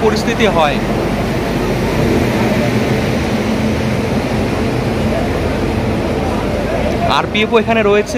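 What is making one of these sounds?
A train rolls past slowly with a steady rumble.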